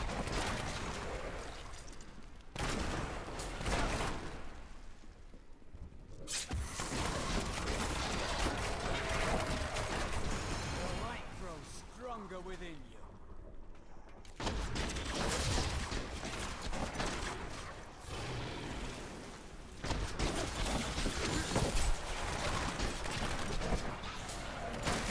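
Magic blasts and blows crash loudly in a fast fight.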